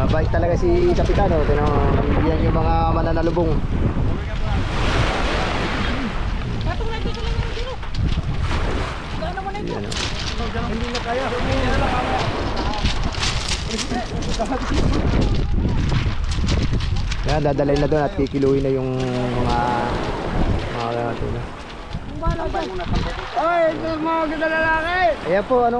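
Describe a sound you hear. Men talk and call out to each other outdoors.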